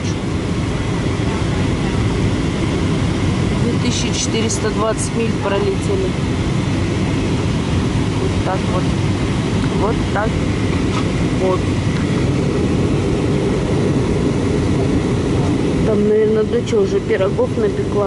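An aircraft engine roars steadily, heard from inside the cabin.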